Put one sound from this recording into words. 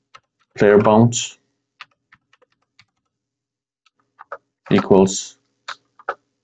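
A man speaks calmly and close to a microphone, in short phrases.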